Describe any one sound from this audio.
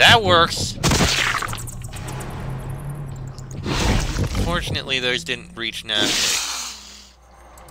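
A magic spell hisses and crackles.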